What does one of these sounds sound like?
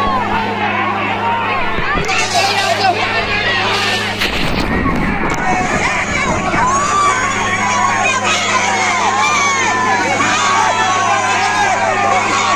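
A large crowd of men and women shouts and cries out outdoors.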